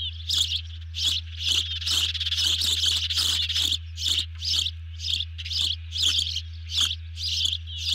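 An osprey calls with repeated high, shrill chirps.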